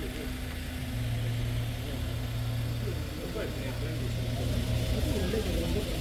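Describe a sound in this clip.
An engine idles steadily nearby.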